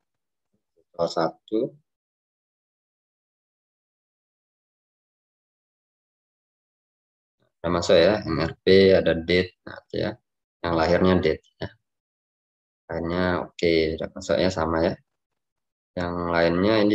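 A young man talks calmly and close to a microphone, in an online call.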